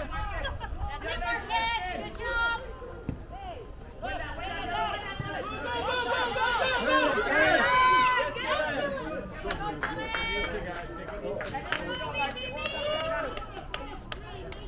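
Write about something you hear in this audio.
Young players shout and call to each other outdoors across an open field.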